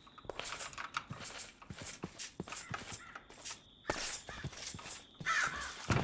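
Footsteps tread over grass and stone.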